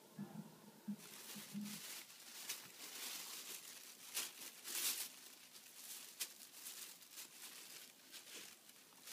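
A plastic bag crinkles and rustles on a small dog's head as the dog moves about.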